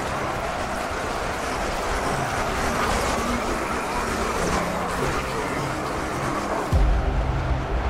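Gunfire crackles across a battlefield.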